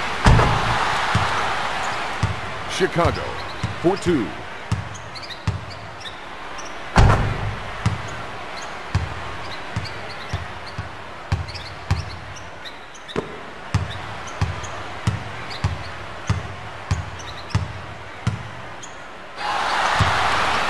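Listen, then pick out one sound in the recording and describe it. A crowd cheers in an arena.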